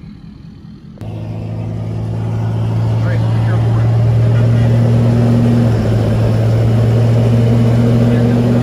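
A truck engine rumbles loudly close by.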